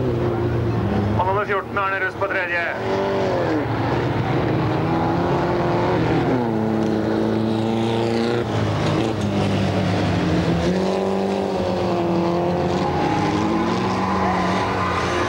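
Rally car engines roar and rev.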